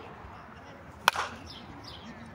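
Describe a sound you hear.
A bat strikes a ball with a sharp, ringing crack.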